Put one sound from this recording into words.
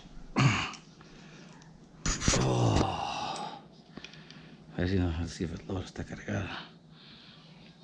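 Metal clicks as a revolver is handled.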